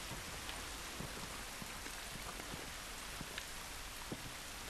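Soft footsteps shuffle over gravel.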